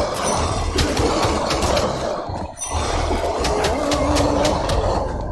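Weapons clash and strike in a game fight.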